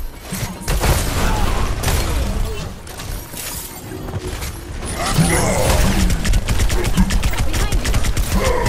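A game's weapon fires in rapid bursts.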